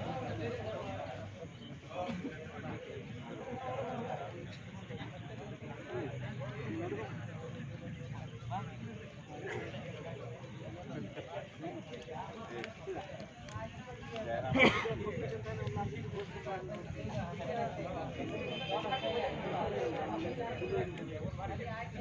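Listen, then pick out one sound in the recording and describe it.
Men chat casually close by, outdoors.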